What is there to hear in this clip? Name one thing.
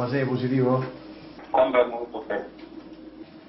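A man speaks over a radio.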